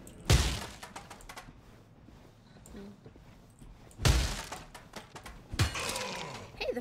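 A heavy hammer strikes flesh with loud, wet thuds.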